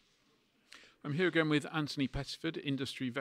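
A middle-aged man speaks calmly into a handheld microphone, close by.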